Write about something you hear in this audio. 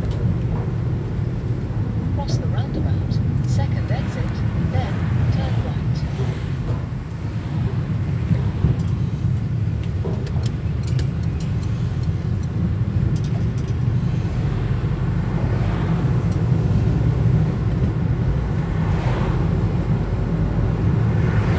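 Tyres roll over the road surface.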